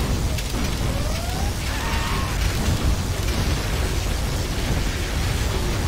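Gunfire and explosions crackle and boom in a battle.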